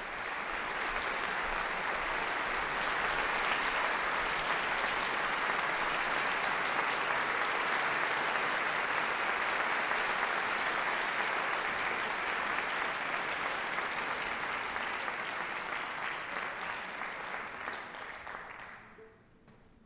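Waves wash gently on the open sea.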